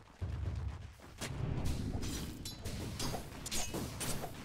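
Electronic game sound effects of spells and strikes clash in a fight.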